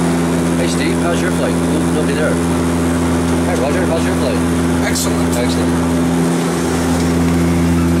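An older man speaks quietly and casually, close by.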